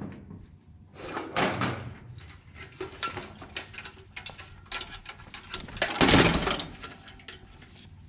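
Metal light fixtures clatter and knock against each other.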